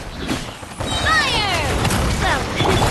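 A bright blast booms loudly.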